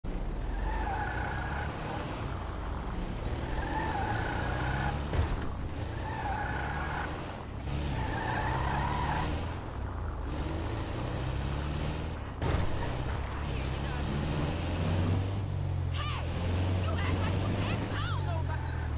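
A van engine hums and revs as it drives.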